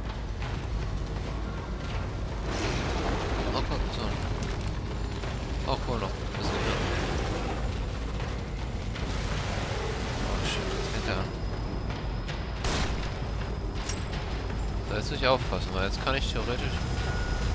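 Flames crackle and roar.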